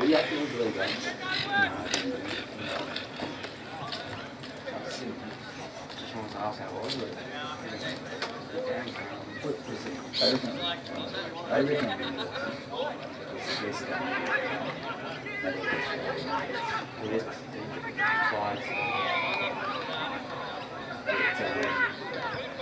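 Young men shout and call out across an open outdoor field.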